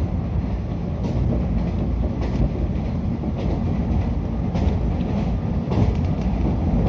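Train wheels click over rail joints in an even rhythm.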